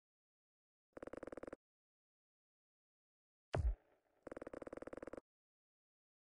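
Short electronic tones play as game points tally up.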